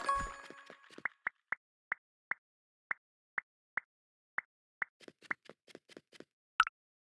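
A game character's footsteps tap steadily and quickly.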